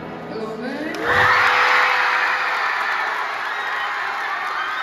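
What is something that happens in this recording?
A crowd of teenagers cheers and screams loudly.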